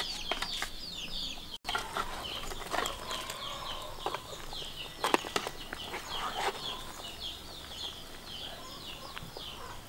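A metal ladle scrapes and knocks against a pot.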